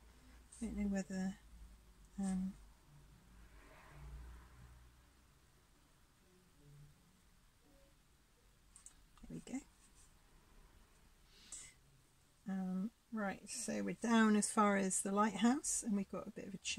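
A paintbrush strokes softly across a canvas.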